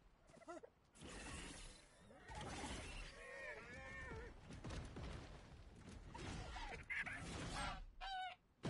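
A large creature growls loudly.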